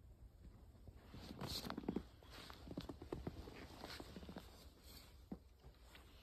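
Footsteps crunch in snow close by.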